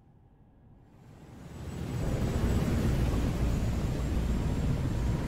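A helicopter's rotors thump overhead and grow louder.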